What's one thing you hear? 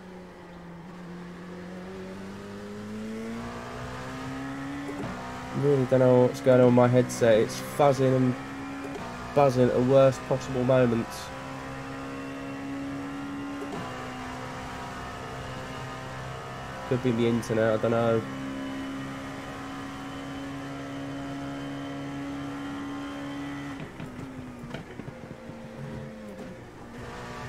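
A racing car engine drones steadily, its pitch rising and falling with the gears.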